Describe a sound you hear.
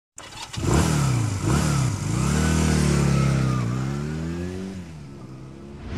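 A motorcycle engine revs up and down loudly.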